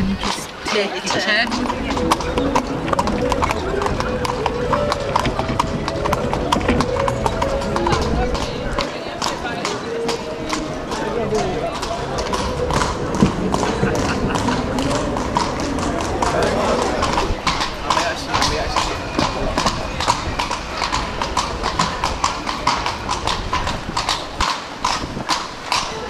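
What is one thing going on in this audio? Carriage wheels rattle over cobblestones.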